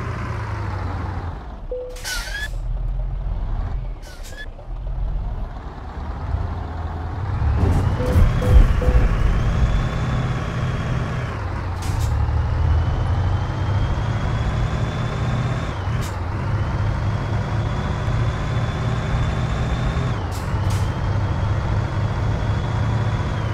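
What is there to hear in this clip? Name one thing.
A truck engine rumbles low and revs up as the truck pulls away.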